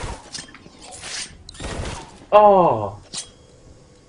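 A thrown blade whooshes through the air.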